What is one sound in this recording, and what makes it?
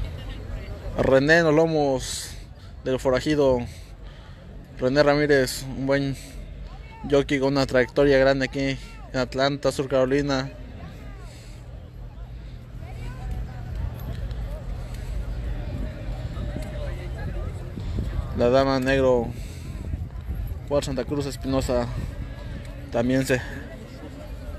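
A man talks loudly close by, outdoors.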